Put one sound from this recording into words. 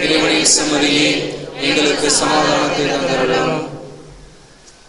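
A man sings slowly through a microphone.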